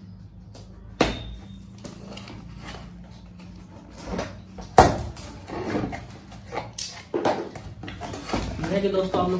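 Cardboard flaps rustle and scrape as a box is opened by hand.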